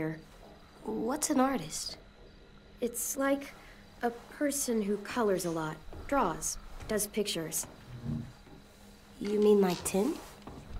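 A young boy asks a question in a small, curious voice.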